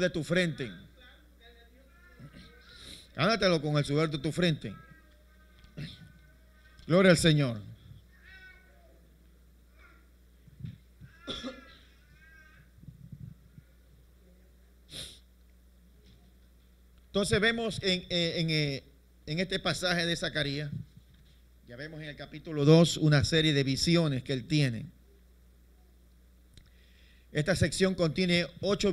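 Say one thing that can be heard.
A man speaks into a microphone in bursts, heard through a loudspeaker in a room.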